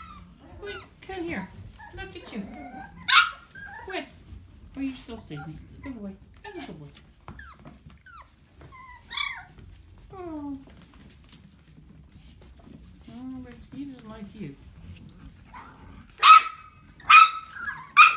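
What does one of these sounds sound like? Puppies whine and squeal close by.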